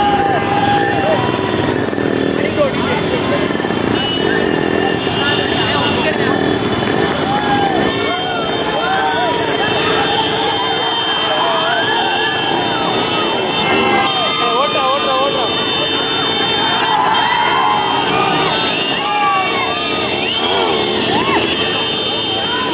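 A crowd of men cheers and shouts excitedly outdoors.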